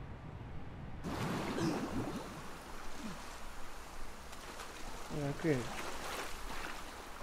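Water splashes loudly as someone surfaces and swims.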